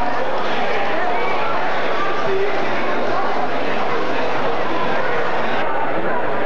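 A big band plays brass music loudly in a large echoing hall.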